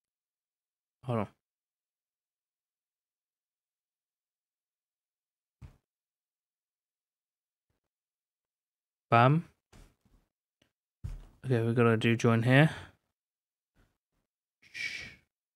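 A young man speaks in short bursts close to a microphone, with long pauses.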